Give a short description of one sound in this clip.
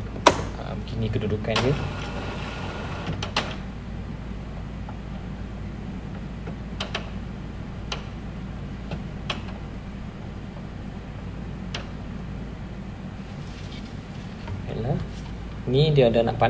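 A printer motor hums and whirs steadily.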